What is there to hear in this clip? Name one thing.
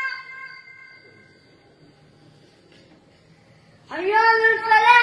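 A young boy chants in a high, clear voice through a microphone.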